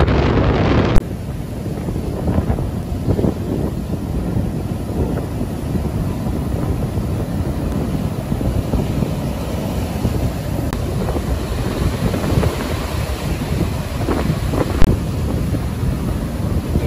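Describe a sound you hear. Waves crash and roll onto the shore.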